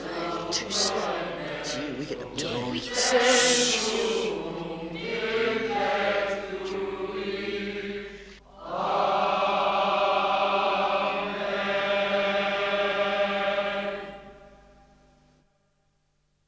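A choir of young boys sings in a large echoing hall, then falls silent.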